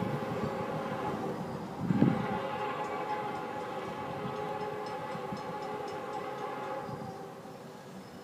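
Wind gusts and rumbles across an open outdoor space.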